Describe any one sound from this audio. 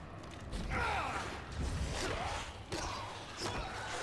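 Heavy blows thud and clatter against a skeleton.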